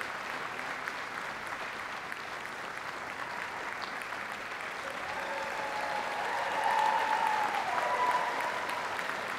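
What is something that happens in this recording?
An audience claps steadily in a large hall.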